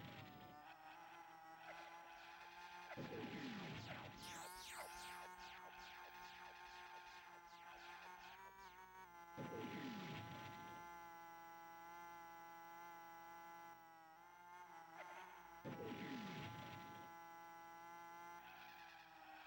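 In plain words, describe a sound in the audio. A video game go-kart engine buzzes.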